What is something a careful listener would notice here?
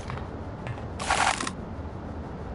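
Ammunition is picked up with a short clattering burst.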